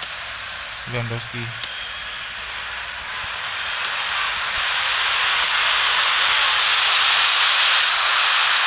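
A stadium crowd roars steadily, slowly growing louder.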